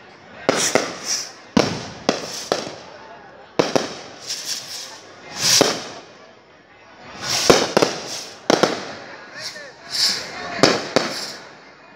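Fireworks whistle and fizz as they shoot up.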